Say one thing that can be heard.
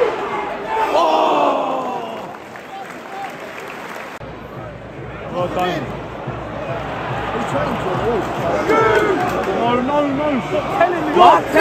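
Men shout nearby in the crowd.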